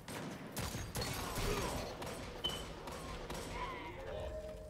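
Video game gunfire crackles in short bursts.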